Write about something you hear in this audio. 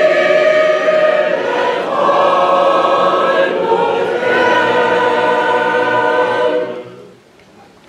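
A choir of elderly women and men sings loudly outdoors.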